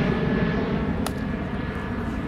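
A bat hits a ball with a sharp crack.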